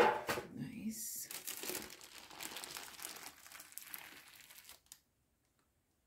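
Baking paper crinkles and rustles as it is peeled off a cake.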